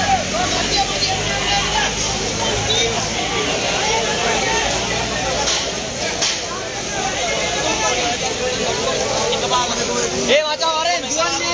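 A large crowd of men shouts and chants outdoors.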